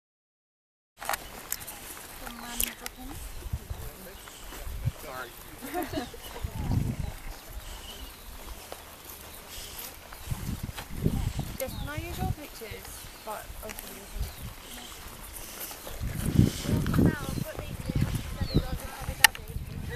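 Footsteps of several people crunch on dry grass.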